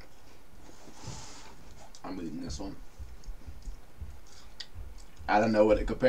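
A young woman chews a crunchy snack.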